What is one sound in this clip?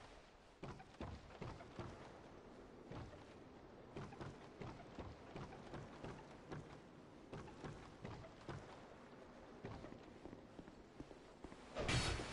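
Footsteps clatter on wooden boards and stone steps.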